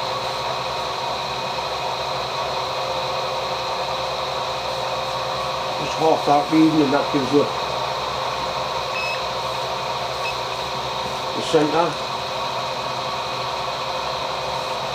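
A milling machine hums steadily as its cutter turns.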